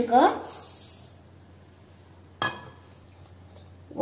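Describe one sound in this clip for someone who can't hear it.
Sugar pours and patters into a metal jar.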